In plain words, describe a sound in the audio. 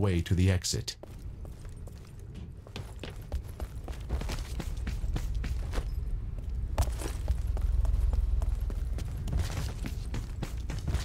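Footsteps run quickly over hard floors.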